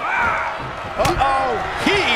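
A blow lands with a sharp thud.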